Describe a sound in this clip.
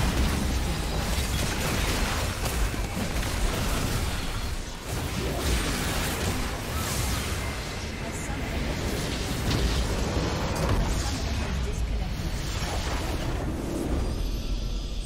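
Spell effects crackle and explosions boom in a fast battle.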